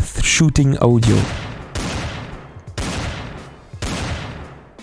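A pistol fires several loud shots, each ringing out and fading.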